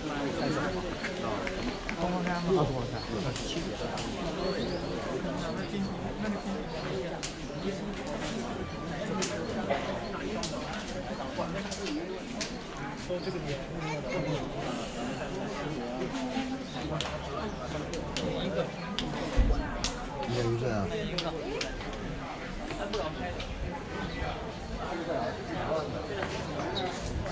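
Many people chatter nearby outdoors.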